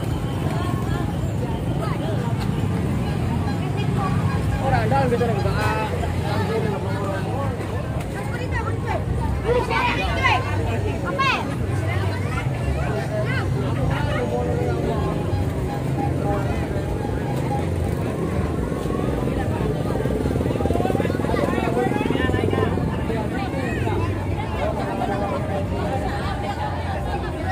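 A crowd of children and adults chatters and shouts loudly outdoors.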